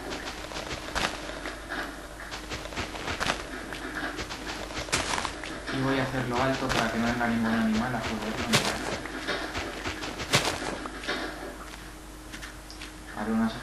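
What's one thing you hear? Dirt crunches in short, repeated bursts as blocks are dug and placed.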